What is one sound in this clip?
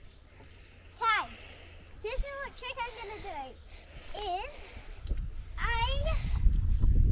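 A young girl speaks brightly from a short distance outdoors.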